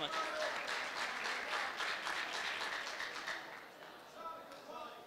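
A crowd of men murmurs in a large hall.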